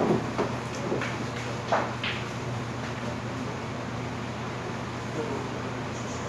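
Men chat in the background.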